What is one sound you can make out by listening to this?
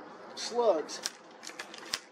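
A rifle's parts click and knock as a man handles them.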